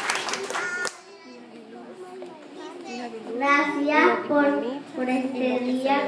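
A young child speaks into a microphone, amplified through loudspeakers in a hall.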